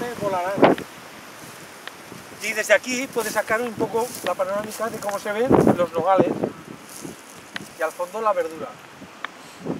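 An elderly man talks calmly and explains close by, outdoors.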